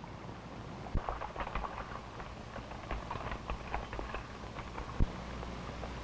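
Horses' hooves thud on the ground.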